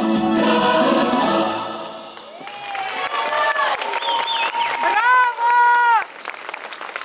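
A choir of women sings together through microphones.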